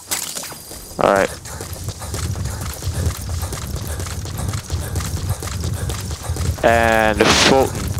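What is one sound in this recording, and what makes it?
Footsteps thud softly on grass as someone runs.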